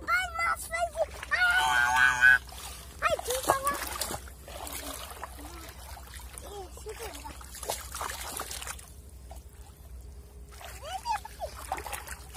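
A fish flaps and splashes in the water.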